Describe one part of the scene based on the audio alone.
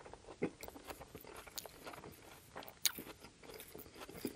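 A fork clinks and scrapes against a glass bowl.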